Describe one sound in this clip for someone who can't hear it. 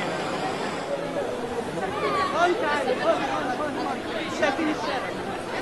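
Women's voices chant loudly with animation close by.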